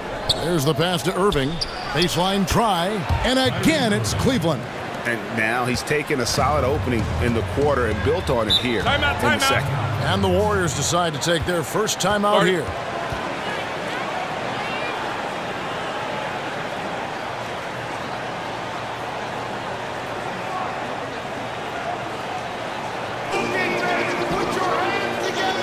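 A large crowd murmurs and cheers in an echoing arena.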